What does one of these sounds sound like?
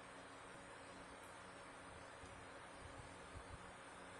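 Fingers press buttons on an electronic instrument with soft clicks.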